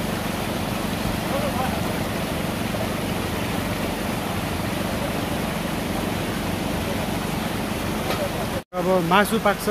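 Water rushes loudly down a small waterfall.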